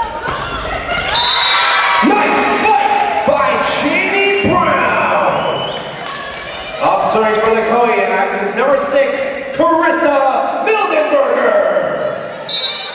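A crowd in the stands cheers and applauds.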